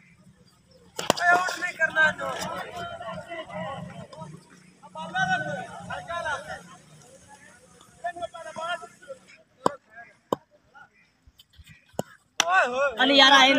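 A cricket bat knocks a ball with a sharp crack.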